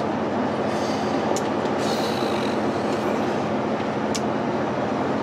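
An engine rumbles steadily as a vehicle drives along.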